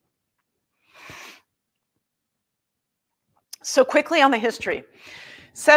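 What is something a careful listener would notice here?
A woman breathes in audibly between phrases.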